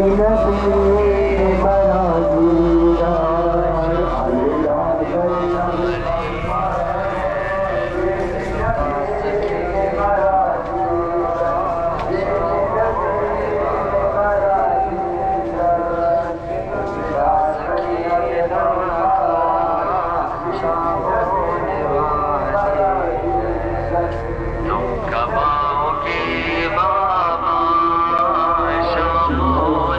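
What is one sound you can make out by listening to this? A crowd of men chants together loudly outdoors.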